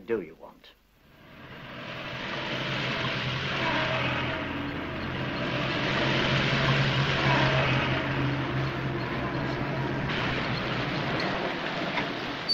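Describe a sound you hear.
Heavy truck engines rumble as a convoy drives past.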